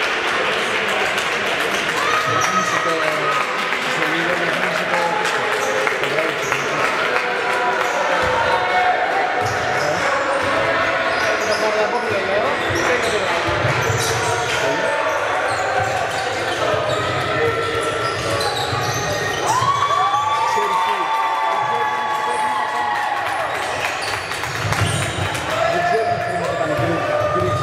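A small crowd murmurs in a large echoing hall.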